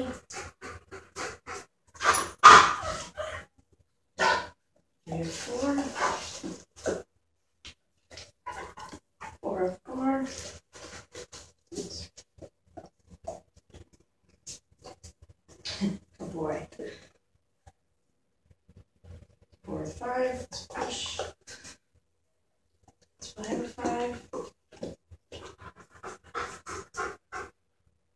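A woman talks to a dog in a calm, encouraging voice close by.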